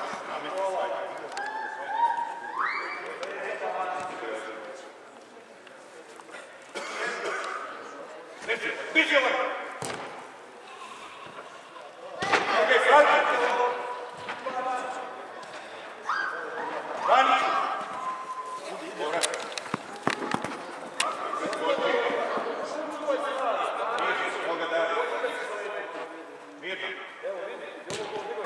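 Spectators shout and cheer in a large echoing hall.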